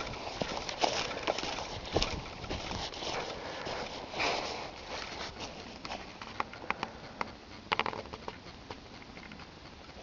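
Footsteps crunch and rustle through dry leaves close by.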